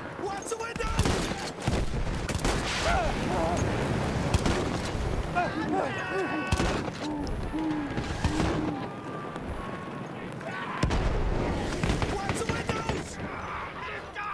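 Explosions boom with heavy rumbles.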